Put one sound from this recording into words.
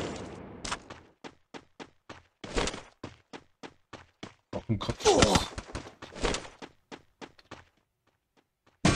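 Footsteps run quickly over ground.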